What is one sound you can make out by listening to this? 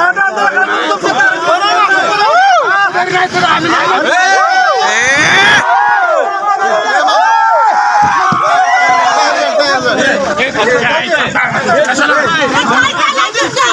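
A crowd of men shout excitedly close by.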